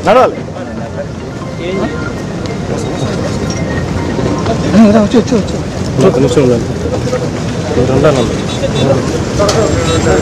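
A crowd of men talk and call out nearby.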